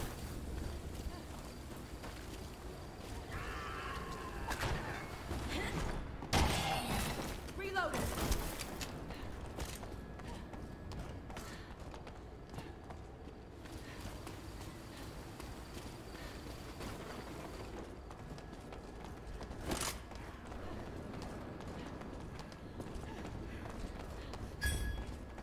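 Footsteps walk steadily across a hard floor.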